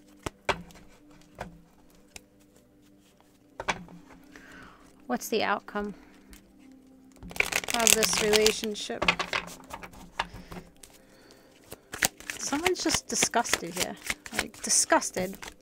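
Cards shuffle and tap together.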